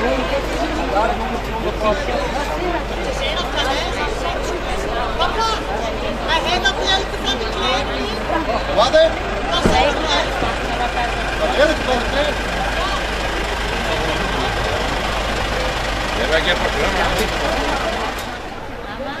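Several men and women talk nearby outdoors.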